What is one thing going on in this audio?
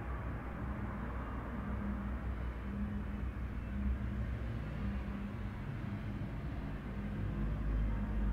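Electronic equipment hums and drones with a low, buzzing rumble.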